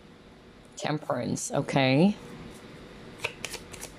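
A card is laid down on a wooden table.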